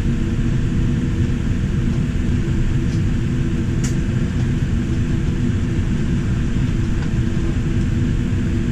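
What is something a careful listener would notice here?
Jet engines hum and rumble steadily from close by.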